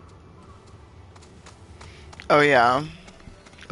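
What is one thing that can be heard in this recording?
Bird feet patter quickly on rocky ground.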